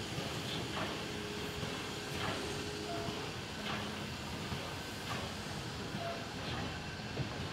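A steam locomotive hisses as it stands.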